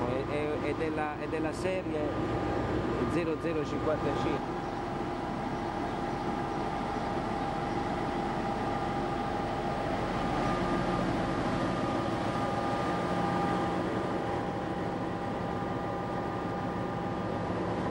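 A diesel locomotive engine rumbles and hums steadily nearby.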